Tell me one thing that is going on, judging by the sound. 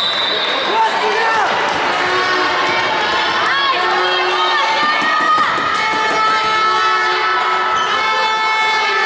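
Players' shoes squeak sharply on a hard court in a large echoing hall.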